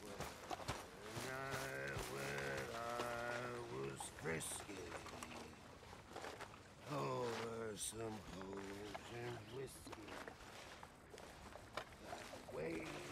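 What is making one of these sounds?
A man sings slowly in a low voice, close by.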